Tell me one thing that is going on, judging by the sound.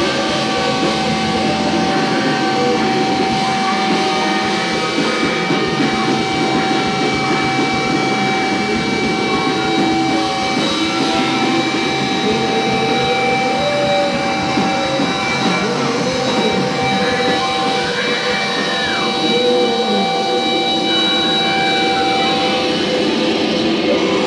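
A band plays loud rock music in a small echoing room.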